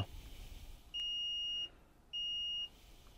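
A multimeter beeps in short steady tones.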